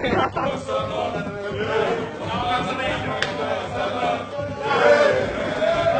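A group of young men talk in a room with a slight echo.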